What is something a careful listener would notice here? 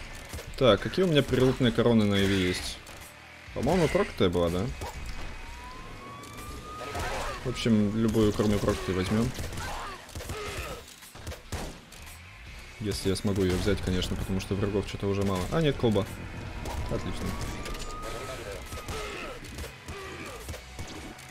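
Video game gunfire pops and crackles in quick bursts.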